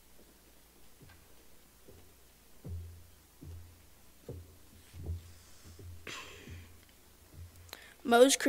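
Footsteps thud on a wooden stage.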